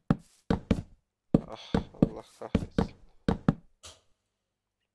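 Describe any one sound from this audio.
Wooden blocks are placed with short, soft knocks.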